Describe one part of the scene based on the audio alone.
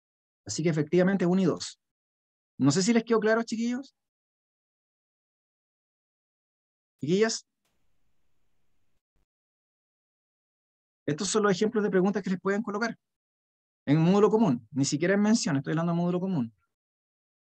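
A man speaks calmly through an online call microphone, in short bursts with pauses.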